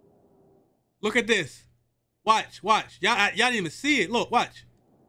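A man talks excitedly close to a microphone.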